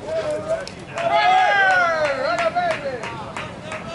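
Men call out and cheer loudly outdoors.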